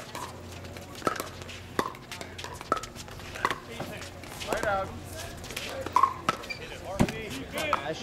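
Paddles pop against a plastic ball in a quick rally.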